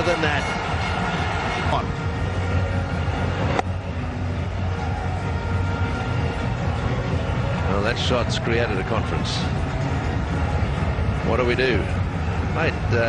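A large crowd cheers and blows horns loudly.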